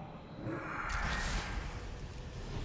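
A magic spell bursts with a shimmering whoosh.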